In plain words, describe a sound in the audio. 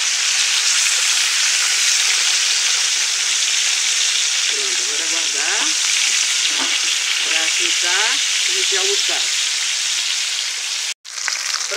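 Fish sizzles and crackles in hot oil.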